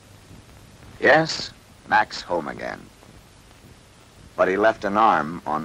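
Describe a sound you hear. A young man speaks in a low voice.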